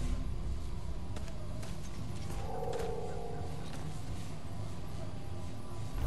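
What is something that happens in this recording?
A magical crystal barrier hums and shimmers.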